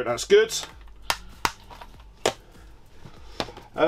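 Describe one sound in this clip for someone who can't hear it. Objects knock and clatter as a man rummages through a box.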